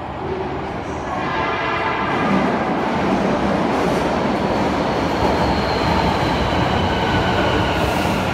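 A train rumbles in, loud and echoing, growing nearer.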